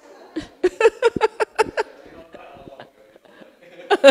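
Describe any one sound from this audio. A middle-aged woman laughs.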